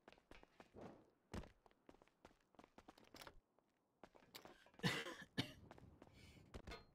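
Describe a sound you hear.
Footsteps hurry across a hard floor.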